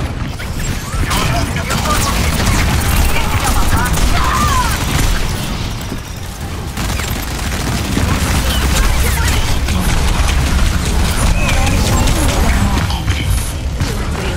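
Game guns fire in rapid bursts.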